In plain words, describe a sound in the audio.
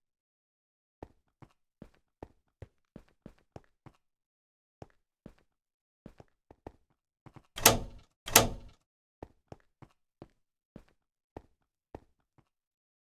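Footsteps tap lightly on stone at a walking pace.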